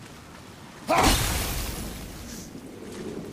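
A magical burst whooshes and shimmers.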